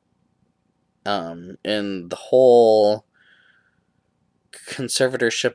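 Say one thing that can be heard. A man talks close to the microphone with animation.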